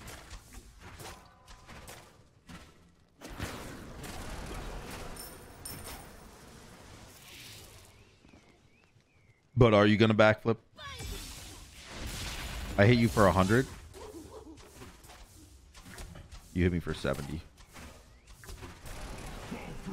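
Magic spell effects whoosh and crackle in a video game.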